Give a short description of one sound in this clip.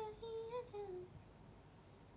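A young woman speaks softly, close to a microphone.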